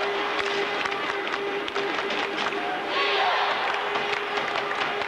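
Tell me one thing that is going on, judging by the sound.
Sticks clack against a puck.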